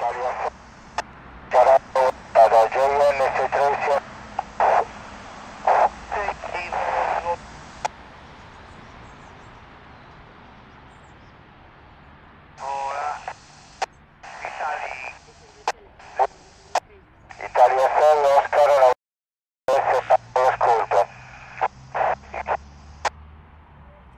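A handheld radio plays crackling transmissions in short bursts through its small speaker.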